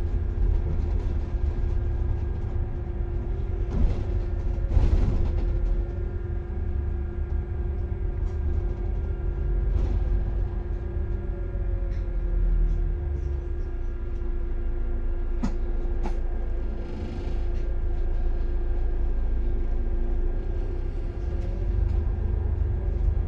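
A bus engine hums steadily from inside as the bus drives along.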